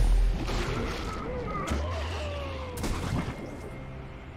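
Game spell effects whoosh and chime.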